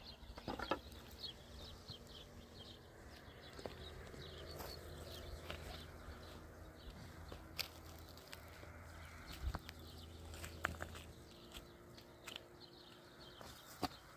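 Loose stones and soil scrape and knock under a man's hands.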